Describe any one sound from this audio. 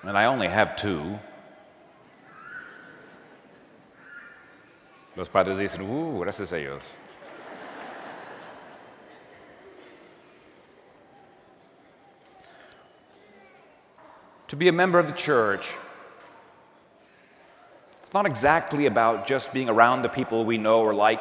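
A man chants in a steady voice through a microphone, echoing in a large hall.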